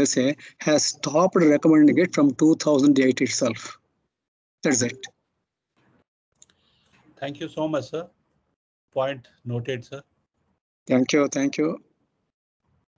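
An elderly man speaks calmly over an online call, in short bursts.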